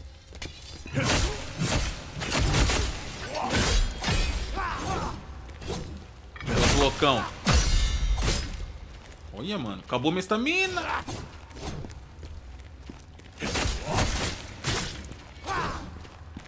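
Blades clash and strike flesh in a fierce fight.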